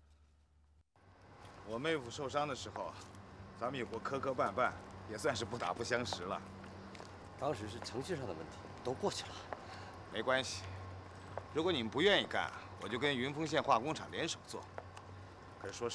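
A middle-aged man speaks calmly outdoors, close by.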